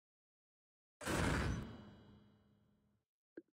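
A loud crash sounds and quickly fades as a cartoon figure falls.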